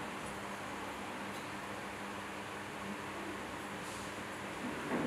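Ceiling fans whir steadily.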